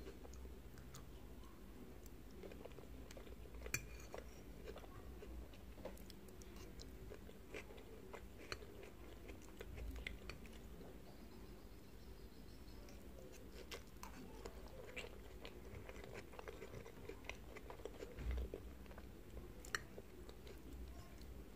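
A fork scrapes and clinks against a glass dish.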